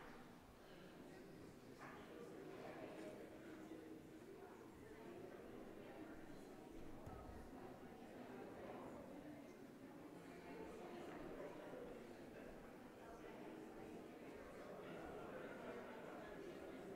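A crowd murmurs throughout the echoing hall.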